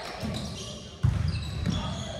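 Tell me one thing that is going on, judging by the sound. A volleyball thumps as it is struck.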